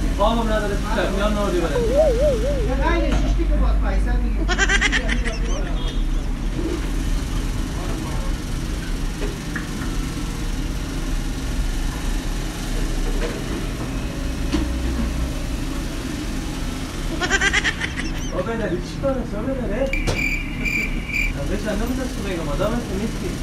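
Men talk calmly nearby.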